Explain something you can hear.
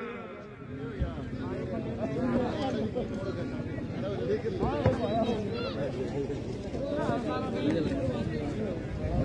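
Men call out to each other across an open field.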